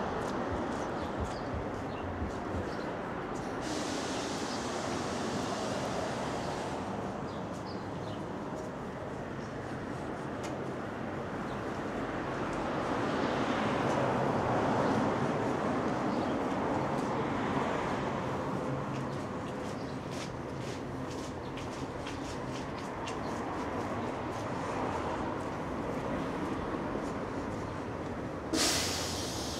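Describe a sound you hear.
Footsteps tap on a paved sidewalk.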